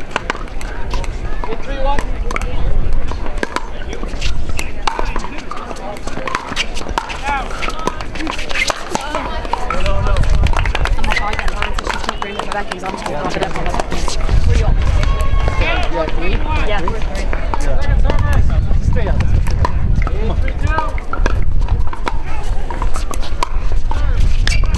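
Paddles pop sharply against a plastic ball.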